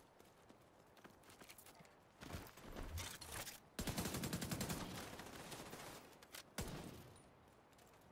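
Guns fire in rapid bursts, loud and close.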